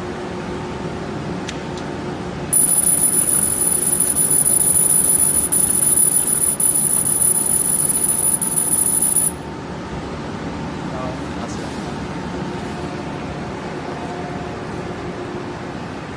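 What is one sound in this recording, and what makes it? Cooling fans hum steadily.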